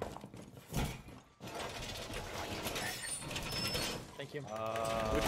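A metal panel clanks and rattles as it is pushed into place.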